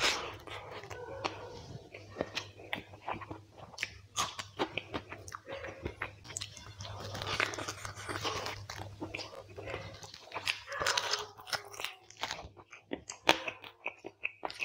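Fingers squish and mix soft rice and curry on a plate.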